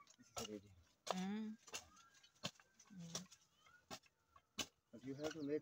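A hoe chops into soft soil.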